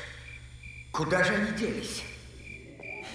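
A man exclaims in surprise.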